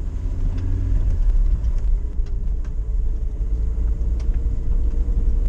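Tyres rumble on a rough road.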